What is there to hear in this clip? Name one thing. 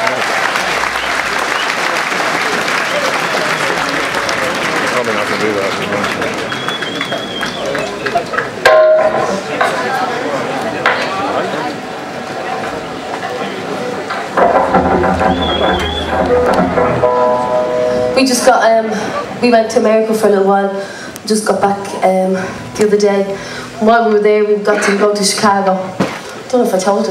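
A band plays live music with electric guitars and an upright bass.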